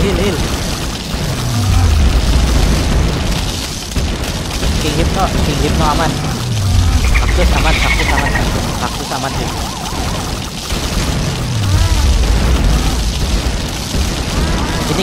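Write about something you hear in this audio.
Game explosions boom with deep rumbles, again and again.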